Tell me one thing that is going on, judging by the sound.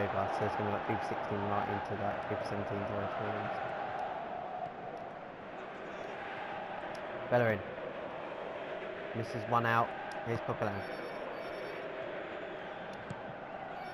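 A large crowd roars steadily in a stadium.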